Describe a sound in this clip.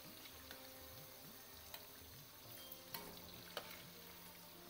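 A metal spoon scrapes and taps against a metal pan.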